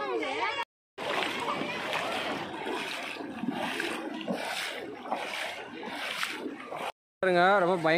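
Feet splash through shallow water.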